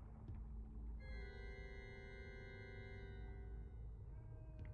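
A pipe organ plays a sustained chord.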